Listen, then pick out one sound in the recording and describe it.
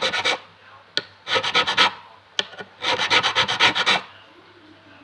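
A metal file rasps against fret ends in quick, short strokes.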